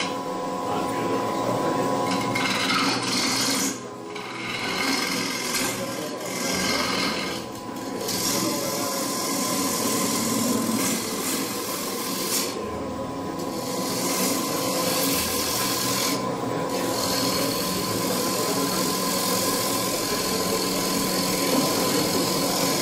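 A chisel scrapes and hisses against spinning wood.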